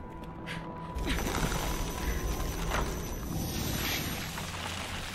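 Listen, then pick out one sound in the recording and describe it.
A magical blast whooshes and crackles with a deep rumble.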